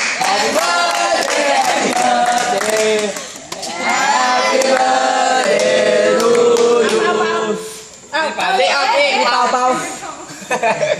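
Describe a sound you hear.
A group of boys and young men sing together loudly, close by.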